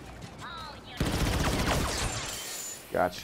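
Blaster fire zaps in rapid bursts.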